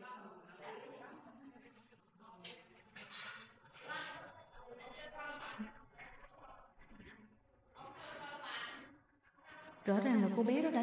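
Women talk quietly in the background.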